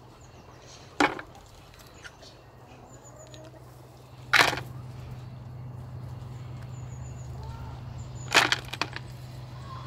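Sticks knock against a plastic bucket.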